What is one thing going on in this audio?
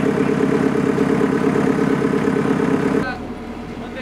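A diesel excavator engine roars loudly.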